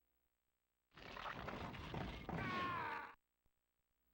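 A whooshing video game sound effect plays.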